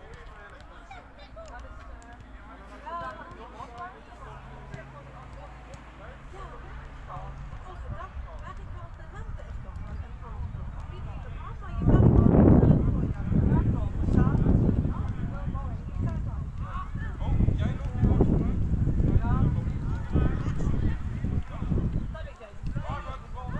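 Children call out and shout across an open field.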